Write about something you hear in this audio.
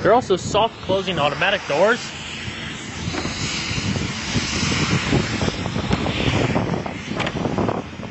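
A car door handle clicks as it is pulled.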